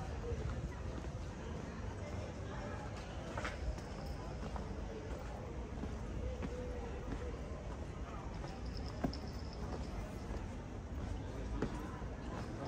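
Footsteps scuff on cobblestones outdoors.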